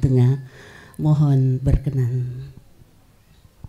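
A man chants loudly through a microphone, then stops.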